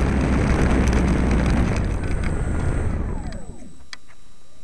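A lawn mower engine roars close by, then winds down and stops.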